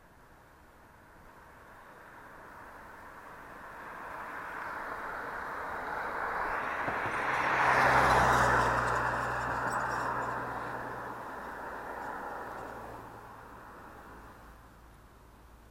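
A car approaches along the road, passes close by and fades away.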